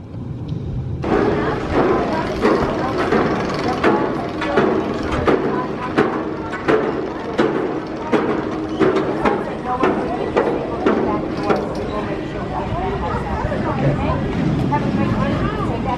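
A steel roller coaster train rumbles and clatters along its track.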